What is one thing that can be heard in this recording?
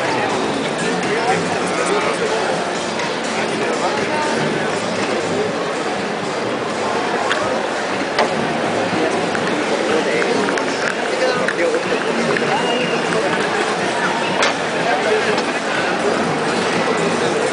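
A large crowd chatters steadily in a big echoing hall.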